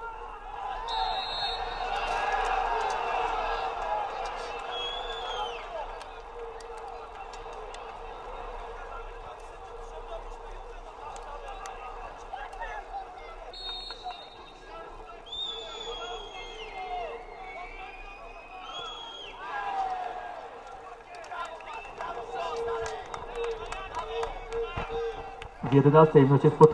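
A distant crowd chants and cheers in an open-air stadium.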